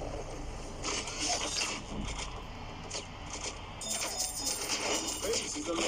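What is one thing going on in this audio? Video game coins jingle as they are picked up.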